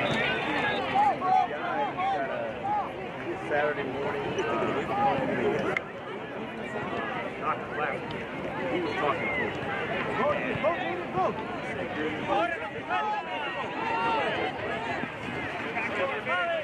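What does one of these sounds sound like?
Young players and onlookers shout and call out across an open field outdoors.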